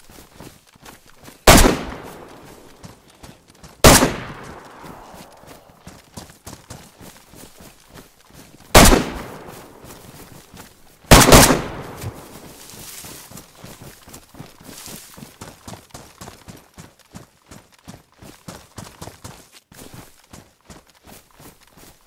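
Footsteps rustle quickly through grass.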